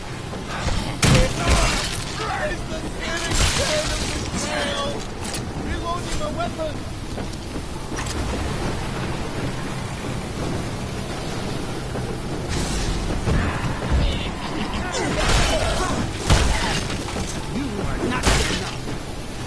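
A sword swings and strikes with sharp hits.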